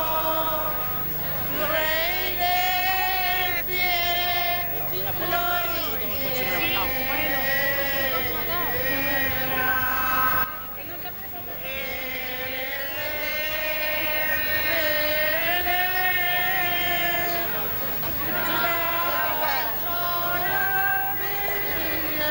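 A crowd of people sings together outdoors.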